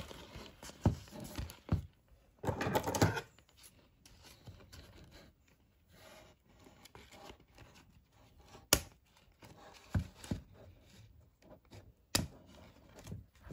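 Cardboard rustles and crackles as it is bent and pulled.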